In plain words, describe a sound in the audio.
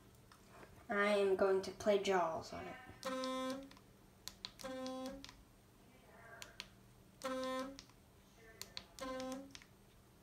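A plastic button clicks under a finger.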